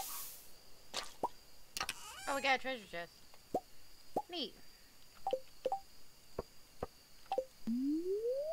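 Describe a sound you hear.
Soft electronic clicks tap rapidly.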